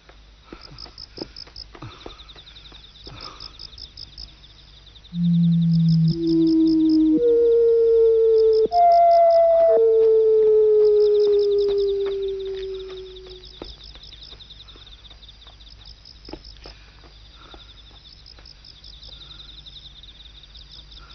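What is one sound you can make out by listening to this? Footsteps tread slowly on the ground.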